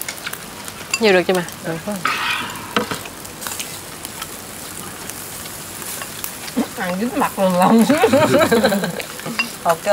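A man and a woman talk and laugh close by.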